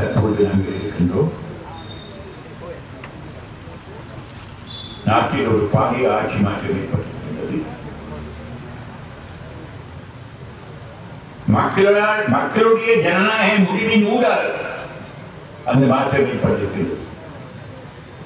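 An elderly man speaks slowly into a microphone, in bursts with long pauses.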